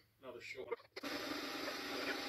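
A power drill whirs as it drives a screw.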